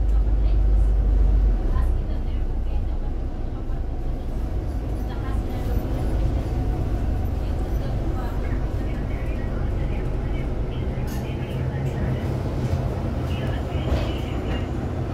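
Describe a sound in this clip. A bus engine rumbles low and steady while driving along a road.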